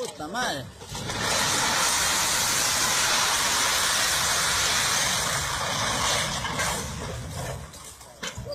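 A heavy truck crashes and tumbles down a rocky slope with a loud, long rumbling roar.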